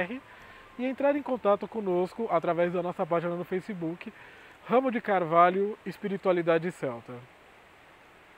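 A man speaks calmly and with animation, close to the microphone.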